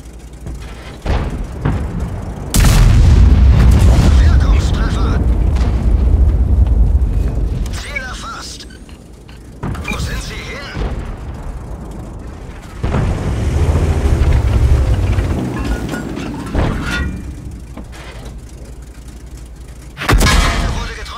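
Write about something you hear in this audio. A heavy cannon fires with loud booming blasts.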